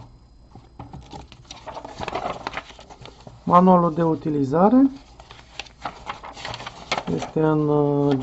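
Paper rustles as a booklet is handled and opened.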